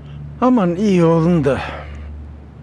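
An elderly man speaks warmly and calmly.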